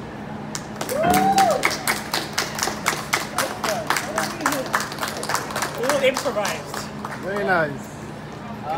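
People in a crowd whoop and cheer.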